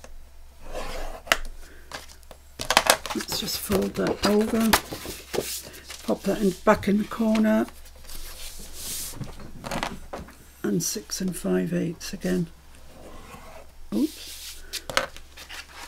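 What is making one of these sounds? A plastic scoring tool scrapes along a sheet of card.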